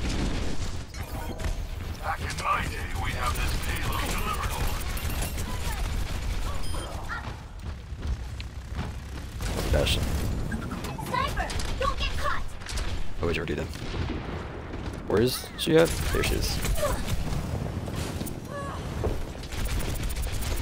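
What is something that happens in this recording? Game sound effects and explosions burst now and then.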